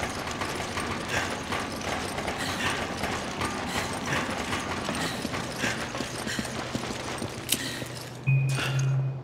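Heavy boots clank on a metal grating.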